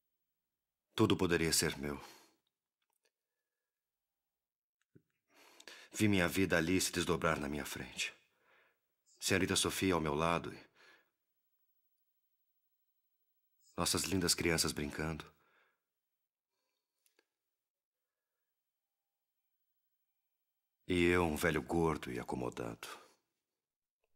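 A man speaks nearby in short, tense bursts with long pauses between.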